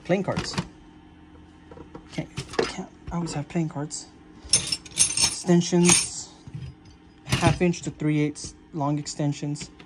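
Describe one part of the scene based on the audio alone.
Metal hand tools clink and rattle as they are handled.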